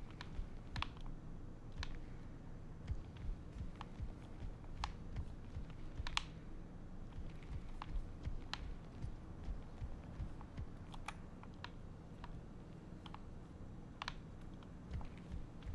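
Footsteps knock on wooden floorboards.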